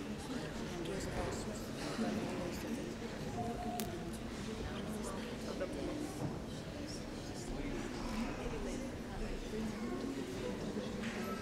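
A crowd of adults chatters all around in a large echoing hall.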